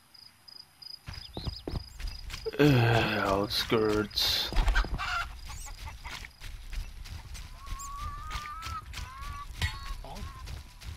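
Footsteps run quickly over gravel.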